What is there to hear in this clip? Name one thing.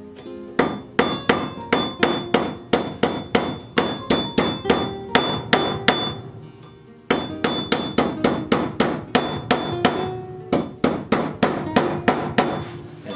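A hammer strikes metal in quick ringing blows.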